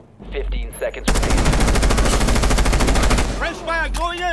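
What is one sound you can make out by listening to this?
Rapid gunfire rattles in a long burst.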